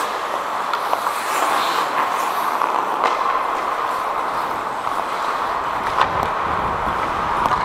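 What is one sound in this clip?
Skate blades scrape and hiss across ice in a large echoing rink.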